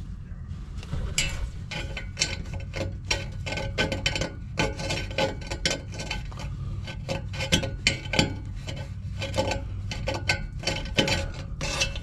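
A hand rubs and scratches at rusty metal with quick scraping sounds.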